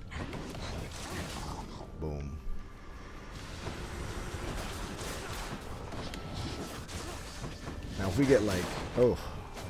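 Game combat effects whoosh and clash.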